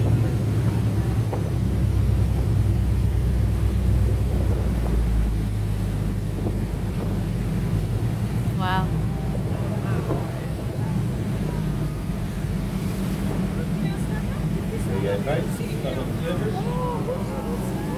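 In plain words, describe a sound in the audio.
Waves slosh on open water.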